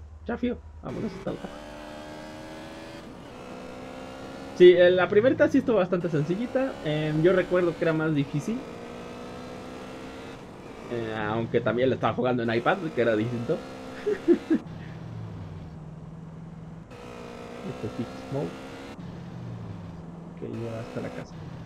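A motorcycle engine hums and revs.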